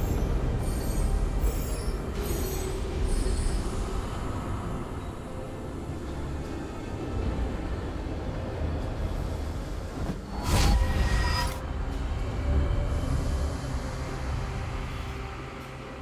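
Fantasy game spell effects whoosh and crackle.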